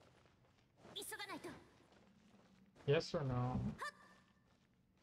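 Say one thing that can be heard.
Magical energy blasts burst with ringing whooshes.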